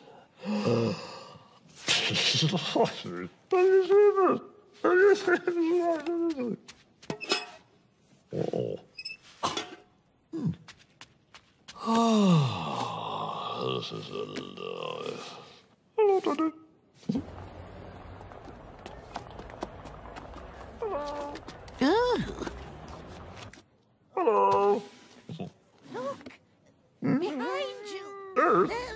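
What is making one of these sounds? A man mumbles and murmurs in a nasal, squeaky voice, close by.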